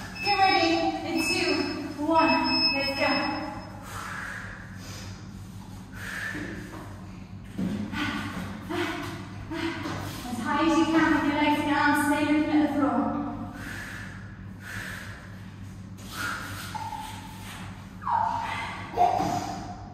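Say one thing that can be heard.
A young woman talks with animation, close by in a small echoing room.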